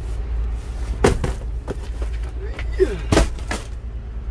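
Cardboard boxes thump as they are loaded and stacked.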